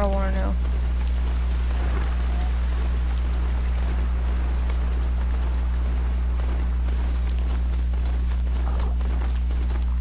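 A mechanical mount's heavy footsteps thud steadily along a forest path.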